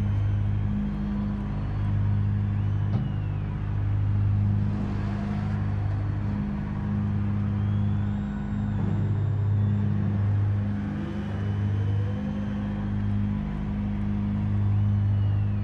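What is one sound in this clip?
A race car engine idles with a low, steady rumble that pulses gently.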